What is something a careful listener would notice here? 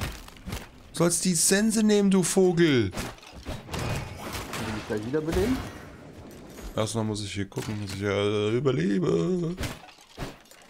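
A young man speaks with animation through a close microphone.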